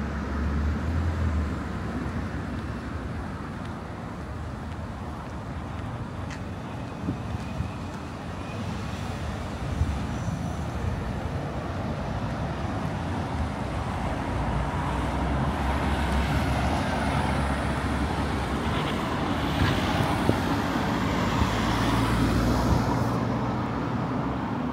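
Road traffic rumbles steadily nearby, growing louder.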